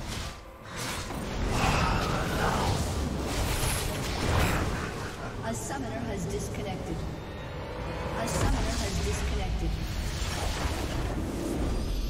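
Game battle effects crash and boom.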